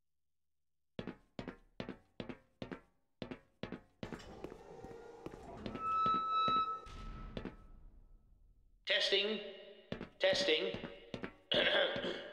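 Footsteps clang on metal grating in a large echoing hall.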